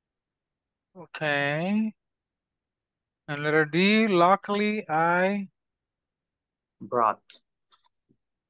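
A woman speaks calmly through a microphone, in short phrases with pauses.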